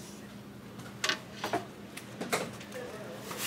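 A wooden tray knocks against a counter.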